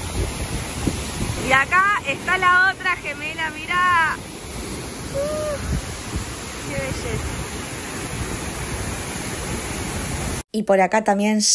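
A waterfall roars steadily close by.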